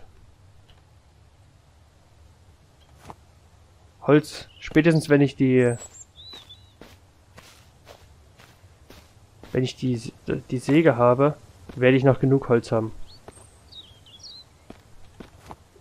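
Footsteps crunch slowly on gravel.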